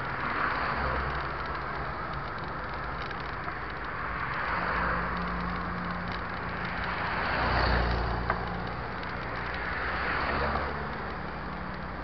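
Cars and motorbikes drive past on a busy road outdoors.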